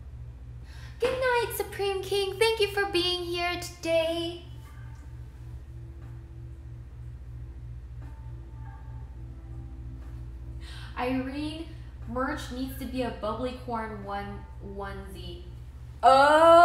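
A young woman speaks cheerfully, close to the microphone.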